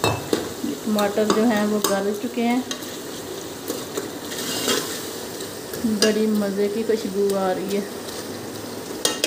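Thick food sizzles and bubbles softly in a pot.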